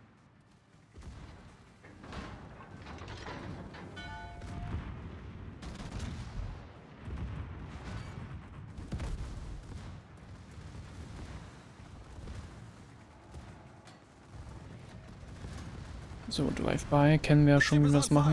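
Heavy ship guns fire with deep booms.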